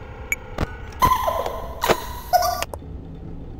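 Electronic static hisses and crackles.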